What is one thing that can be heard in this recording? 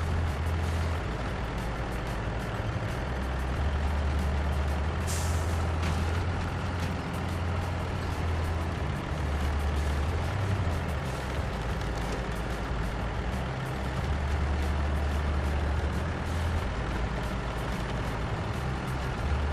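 A heavy truck engine rumbles steadily as the truck drives through snow.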